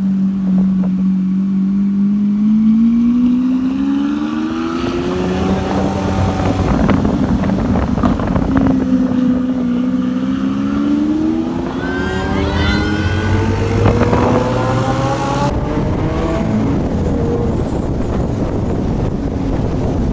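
A sports car engine roars and revs up and down close by.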